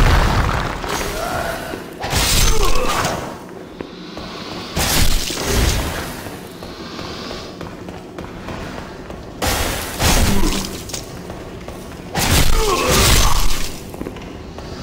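Sword blows strike and smash wooden crates.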